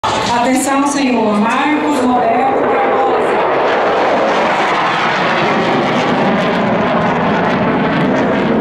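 A jet plane roars loudly overhead.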